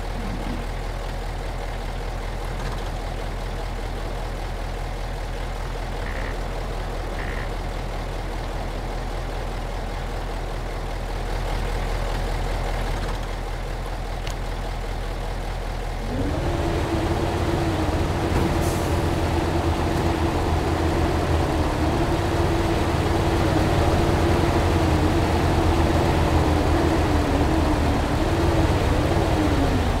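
A truck engine idles with a low steady rumble.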